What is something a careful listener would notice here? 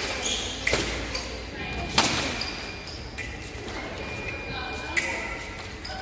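Fencing blades clash and clink sharply in an echoing hall.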